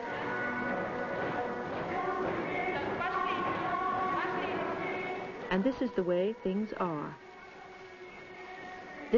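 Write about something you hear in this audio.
A crowd of children and adults murmurs and chatters in a large echoing hall.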